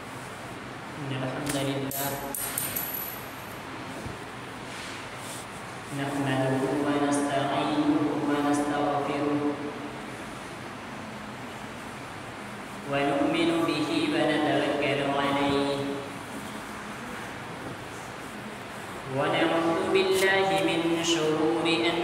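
A young man speaks through a microphone in bursts, with pauses, in a slow chanting voice.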